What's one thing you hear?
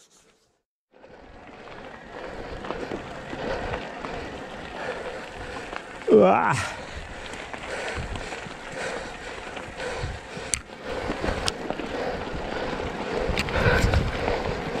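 Bicycle tyres crunch over a gravel track.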